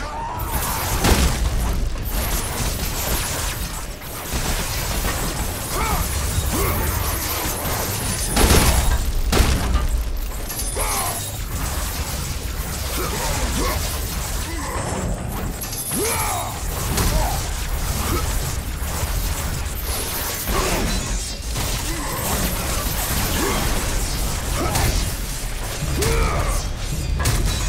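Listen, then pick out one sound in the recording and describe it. Chained blades whoosh through the air in fast swings.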